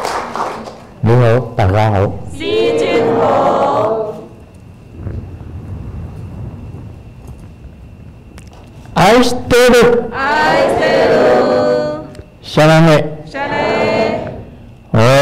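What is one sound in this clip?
An elderly man chants loudly in long, wavering tones, close to a microphone.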